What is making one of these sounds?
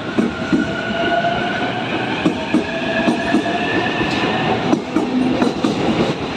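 A train's motor whines steadily as it picks up speed.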